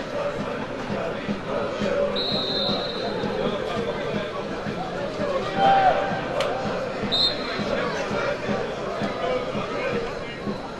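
A small crowd chatters and calls out in an open stadium.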